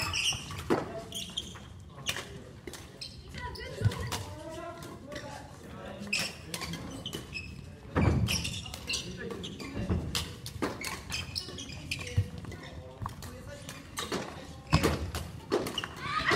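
Footsteps patter quickly across a wooden floor.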